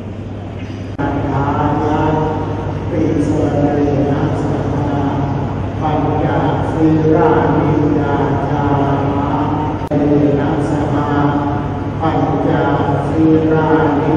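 A group of people chants together in a steady, droning unison, echoing in a large hall.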